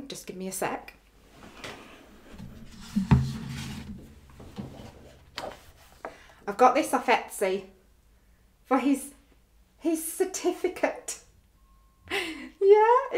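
A woman talks with animation, close by.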